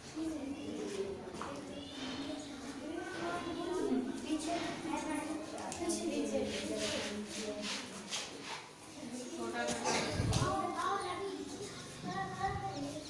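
Children's voices chatter and call out nearby.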